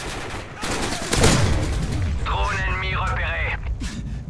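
Automatic gunfire rattles in short bursts.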